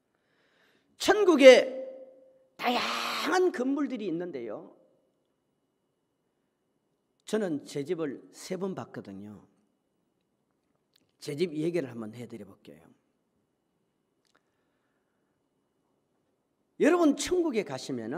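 A middle-aged man preaches forcefully into a microphone in bursts, with pauses between them, in a large echoing hall.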